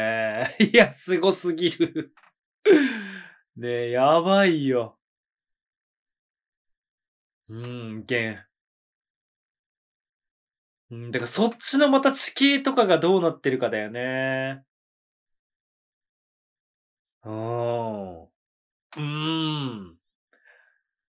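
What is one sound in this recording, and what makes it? A man speaks with animation into a close microphone, in bursts with pauses.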